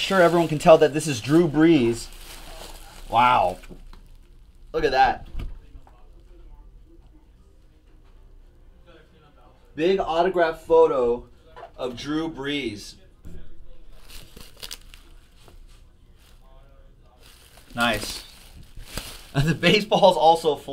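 Bubble wrap crinkles as hands handle it.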